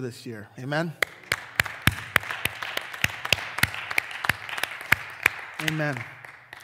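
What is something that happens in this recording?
A man claps his hands steadily.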